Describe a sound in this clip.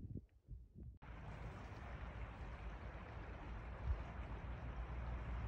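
A shallow river flows and burbles steadily.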